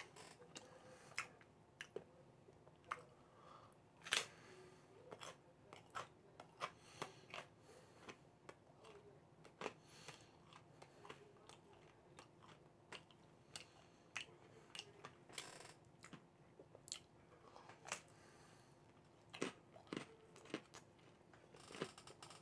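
A man eats, chewing and crunching food close by.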